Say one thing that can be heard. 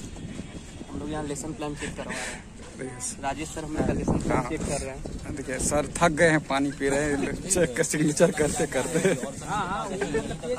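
Young men talk with animation close by, outdoors.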